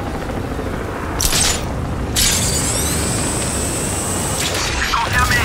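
A laser weapon zaps and crackles in bursts.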